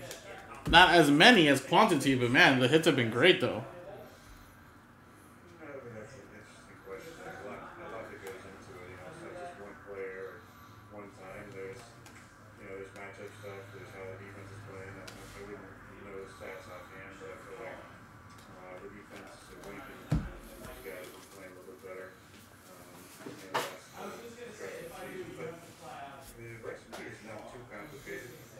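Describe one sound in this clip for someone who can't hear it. A man talks steadily into a microphone, close by.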